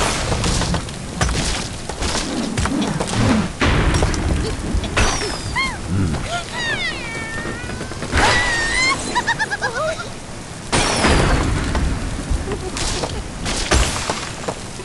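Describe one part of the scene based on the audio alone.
Wooden blocks crash and break apart.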